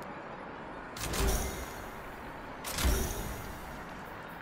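A whooshing, rumbling burst sounds twice.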